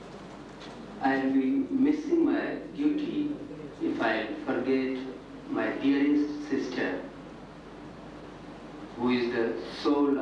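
A man speaks into a microphone, heard through loudspeakers in a hall.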